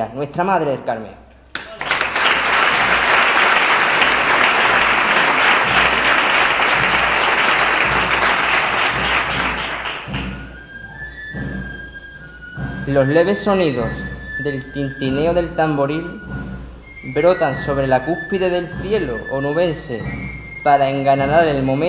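A young man reads out steadily into a microphone, heard through loudspeakers.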